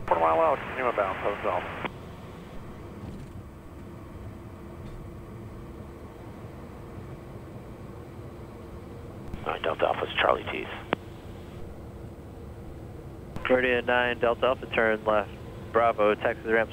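A man speaks calmly over a headset intercom.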